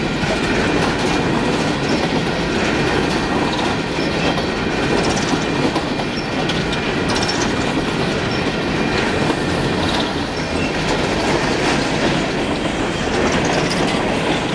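Steel wheels clack over rail joints as the freight cars pass.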